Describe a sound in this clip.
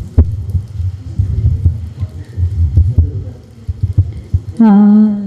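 A microphone thumps and rumbles as it is handled and passed along.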